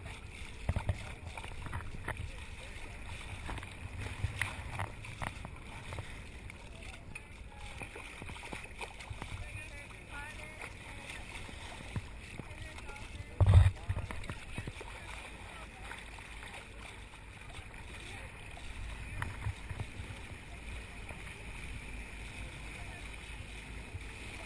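Water rushes and splashes along a moving boat's hull.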